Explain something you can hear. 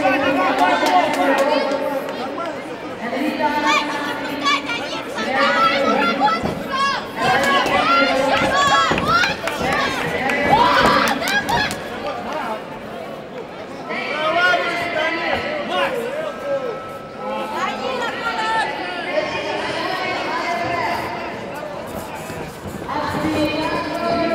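Men shout loudly from ringside in a large echoing hall.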